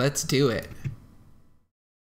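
A man speaks briefly and casually, close to a microphone.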